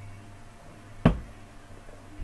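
A plastic cup is set down on a table with a knock.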